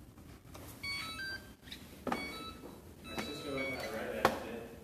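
A hoverboard gives short electronic beeps.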